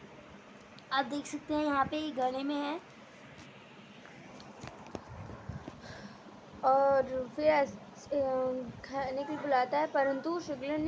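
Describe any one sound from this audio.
A young girl speaks close by in short bursts.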